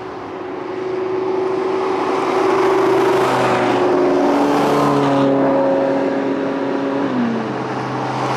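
A high-revving sports car accelerates past on an asphalt road.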